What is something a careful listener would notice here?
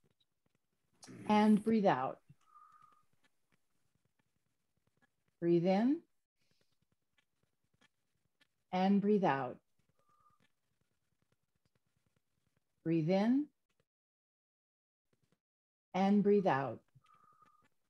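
A woman speaks in short, separate phrases over an online call.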